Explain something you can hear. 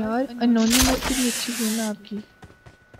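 A smoke grenade hisses loudly.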